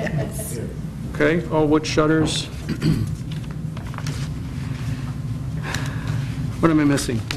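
Papers rustle.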